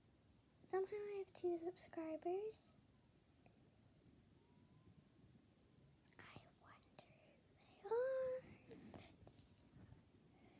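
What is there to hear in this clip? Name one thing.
A young girl speaks with animation, close to the microphone.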